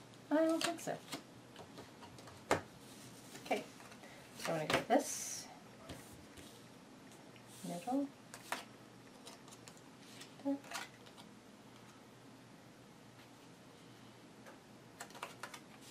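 Playing cards slide and tap softly on a cloth-covered table.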